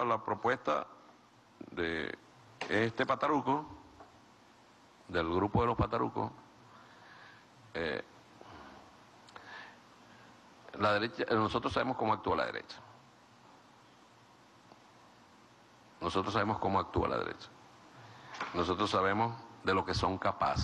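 A middle-aged man speaks calmly into a microphone, with pauses between phrases.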